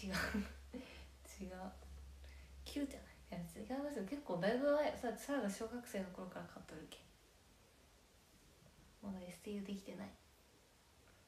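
A young woman talks casually and close to a microphone.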